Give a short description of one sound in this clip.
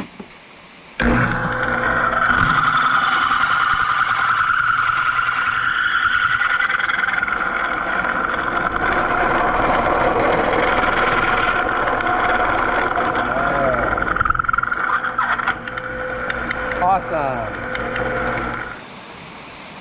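A drill press whines and grinds loudly as it bores into steel.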